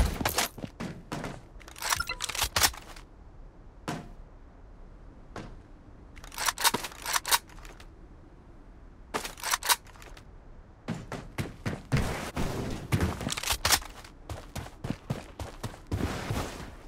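Quick footsteps thud on hard ground.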